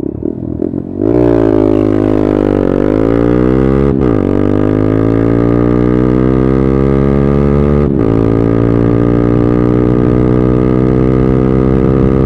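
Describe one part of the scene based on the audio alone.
A motorcycle engine roars as the bike accelerates, rising in pitch and dropping briefly at each gear change.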